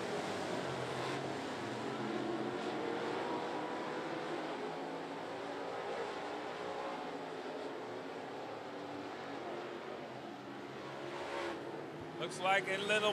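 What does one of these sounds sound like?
Race car engines roar around a dirt track.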